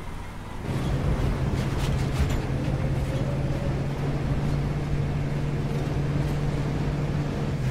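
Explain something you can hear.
A metal ring clinks against a wheel.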